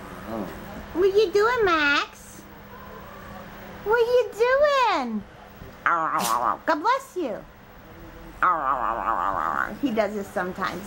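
A small dog whines in high, rising and falling cries.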